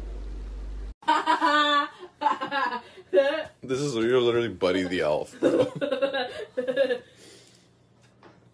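A young woman laughs and talks with animation.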